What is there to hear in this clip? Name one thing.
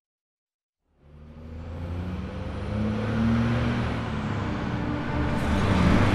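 A truck engine rumbles as a truck drives slowly past.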